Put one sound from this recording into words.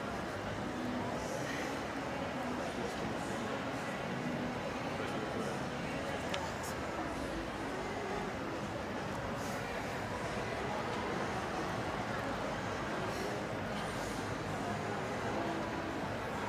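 A young woman talks quietly.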